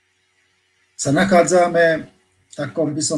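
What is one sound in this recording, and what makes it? A man speaks calmly into a microphone, heard as in an online call.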